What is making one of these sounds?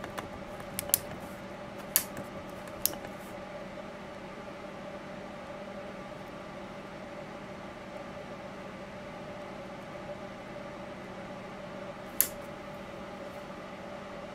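A small motor hums steadily as it turns.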